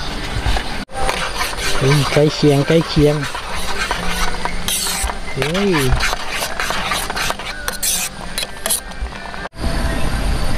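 A metal spoon scrapes and clinks inside a pot.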